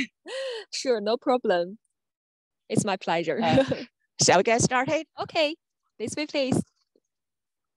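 A second young woman speaks calmly nearby.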